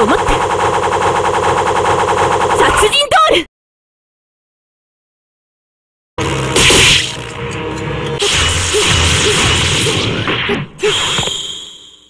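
Rapid electronic hit sounds crackle in quick succession.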